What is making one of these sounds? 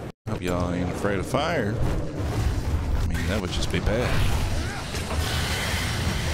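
Flames explode with a deep rumbling boom.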